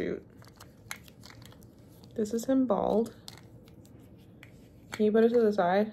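Plastic toy parts click and rattle in hands.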